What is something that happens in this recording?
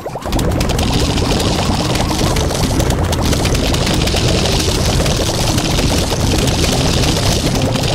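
Cartoon zombies munch and groan in a video game.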